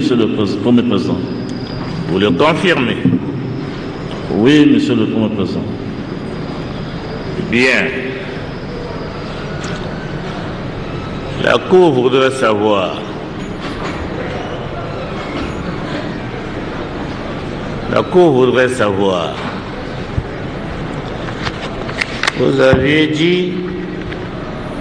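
A man speaks solemnly in short phrases separated by long pauses, in an echoing hall.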